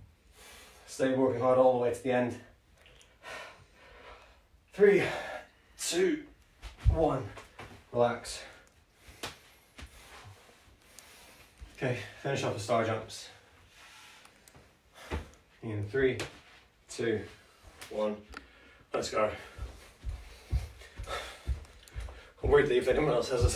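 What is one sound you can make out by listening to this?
A man speaks calmly close by, pausing between phrases.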